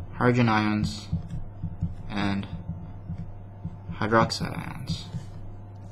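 A felt pen squeaks and scratches on paper.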